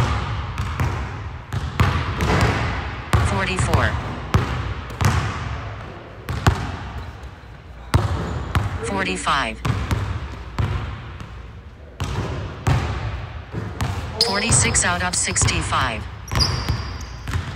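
A basketball bounces repeatedly on a wooden court in a large echoing gym.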